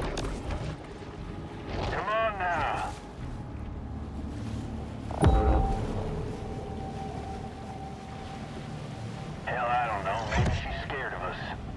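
Water swishes as a shark swims near the surface.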